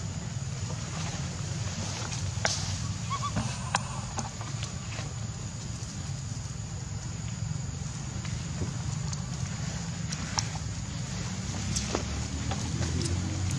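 Monkey footsteps rustle on dry leaves and dirt.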